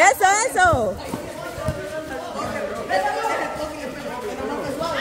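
Young men and women shout and chatter.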